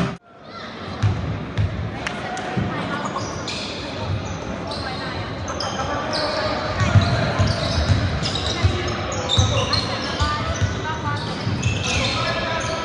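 A basketball bounces with dull thuds.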